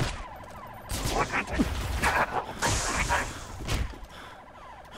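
A grenade explodes with a loud, rumbling blast.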